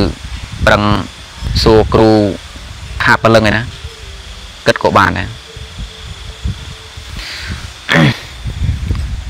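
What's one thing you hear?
A man speaks calmly and close, in short phrases with pauses.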